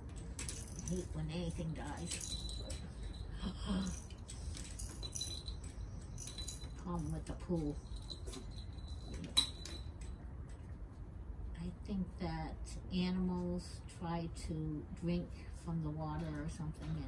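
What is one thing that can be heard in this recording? Small puppies yip and bark playfully.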